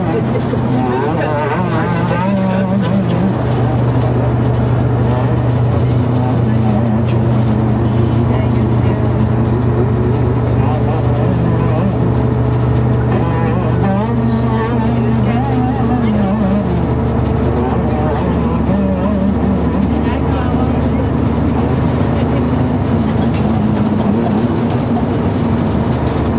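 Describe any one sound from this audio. A man sings through a loudspeaker in an enclosed space.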